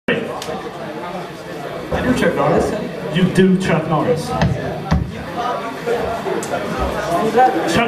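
An electric guitar plays loud and distorted.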